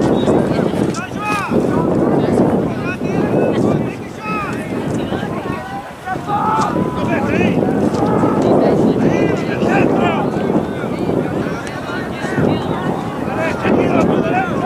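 Young men shout and call to each other across an open outdoor field.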